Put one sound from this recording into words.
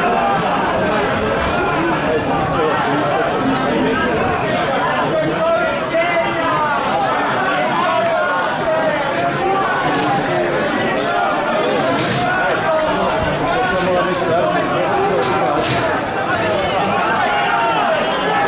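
A large crowd of spectators chatters and calls out outdoors.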